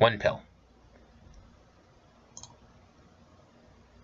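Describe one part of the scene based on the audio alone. A game interface gives a short electronic chime.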